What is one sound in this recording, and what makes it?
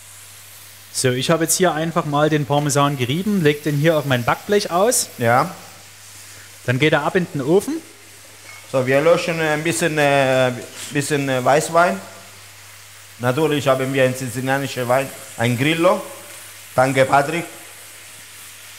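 A man talks with animation into a microphone close by.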